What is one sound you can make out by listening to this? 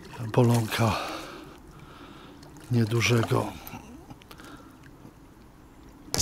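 A fish splashes at the surface of the water.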